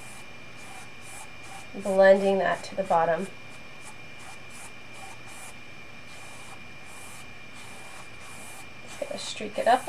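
A brush strokes softly across canvas in quick repeated swishes.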